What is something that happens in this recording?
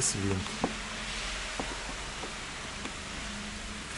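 Plastic clips click and rattle as hands pull at a car door panel.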